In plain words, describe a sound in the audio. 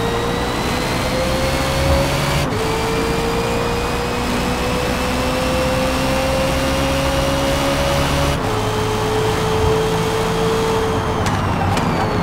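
A racing car engine roars, climbing in pitch and dropping briefly at each gear change.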